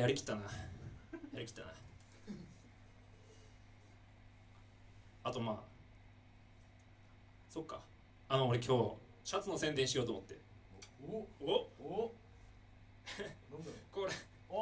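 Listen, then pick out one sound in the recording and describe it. A drum kit is struck in short bursts.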